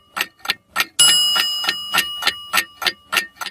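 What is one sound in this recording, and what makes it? An alarm clock bell rings with a bright chime.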